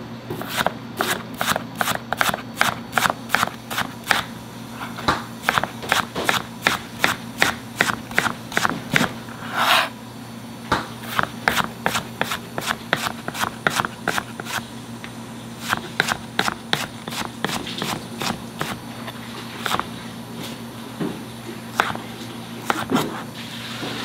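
A knife chops quickly and rhythmically against a plastic cutting board.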